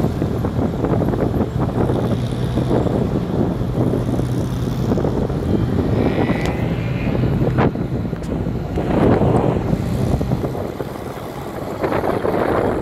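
Several old car engines drone and roar nearby.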